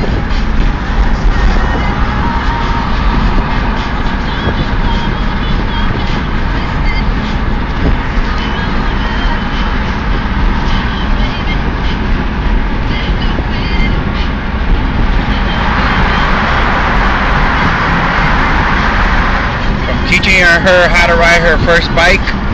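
A car engine hums and tyres roar steadily.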